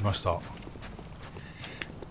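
Footsteps tap on a tiled roof.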